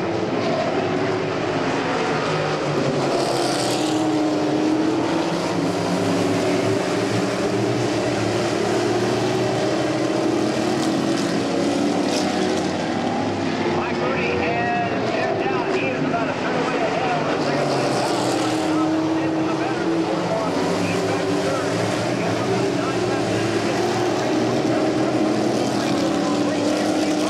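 Several race car engines roar loudly as they speed around a track.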